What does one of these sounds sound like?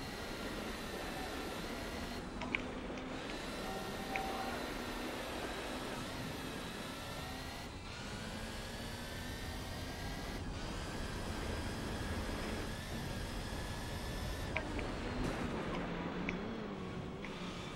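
Tyres skid and hiss on snow.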